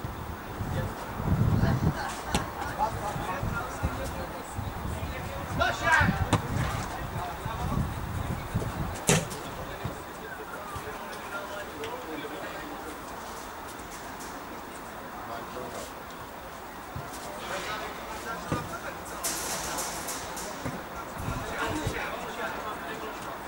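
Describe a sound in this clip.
Young men call out faintly in the distance outdoors.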